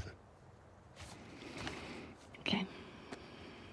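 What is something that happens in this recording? A young girl speaks softly and close by.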